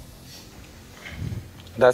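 A young man answers quietly close to a microphone.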